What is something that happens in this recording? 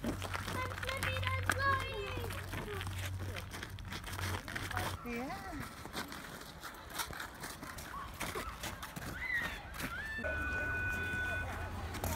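Boots crunch and scrape on icy snow.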